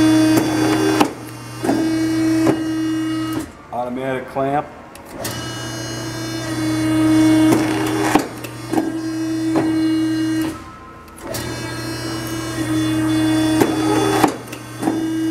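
A cutting machine's blade comes down with a heavy clunk.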